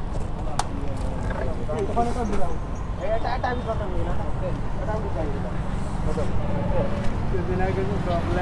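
Young men talk and call out nearby.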